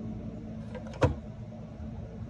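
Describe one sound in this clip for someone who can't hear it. A metal can clicks against the can opener.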